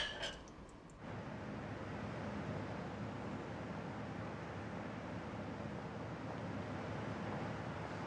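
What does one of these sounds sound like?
A woman's footsteps tap on a pavement.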